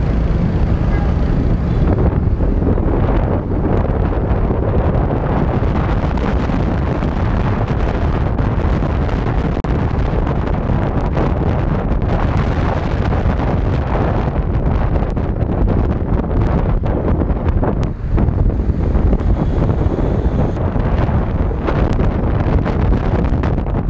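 Motorbikes buzz by in busy traffic.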